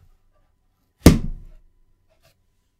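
A metal case is set down on a hard surface with a hollow thud.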